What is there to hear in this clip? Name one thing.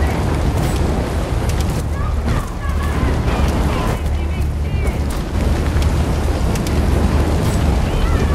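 A large fire roars and crackles close by.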